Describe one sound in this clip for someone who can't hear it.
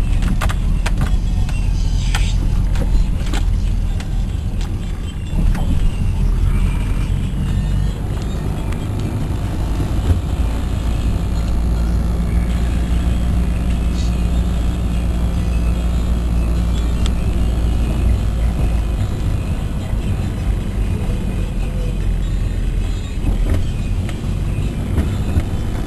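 Rain patters on a car's windshield.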